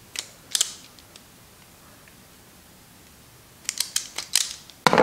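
Wire strippers click and snip at a wire.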